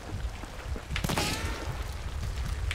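A revolver fires a single loud shot that rings out.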